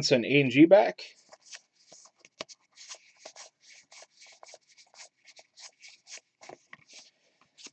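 Trading cards rustle and flick as they are flipped through by hand.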